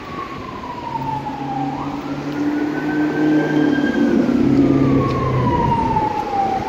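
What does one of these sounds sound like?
A bus engine rumbles as the bus drives past close by.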